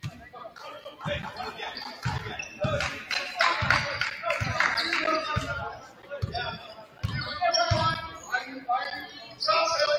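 A basketball bounces on a hardwood floor in steady dribbles.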